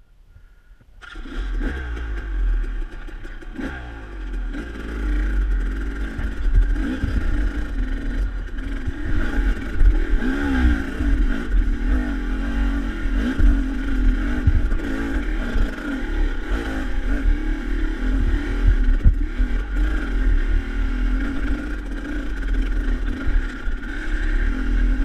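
A dirt bike engine revs and putters close by, rising and falling as it climbs.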